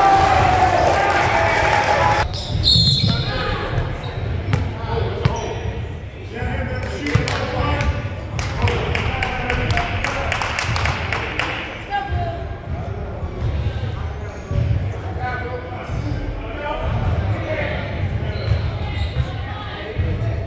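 A crowd of young players and spectators shout and talk in an echoing gym.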